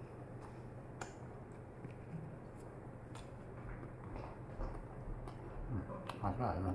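Wooden chopsticks click together.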